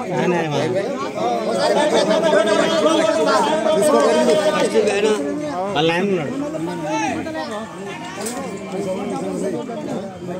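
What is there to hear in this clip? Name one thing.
A middle-aged man speaks into a microphone close by.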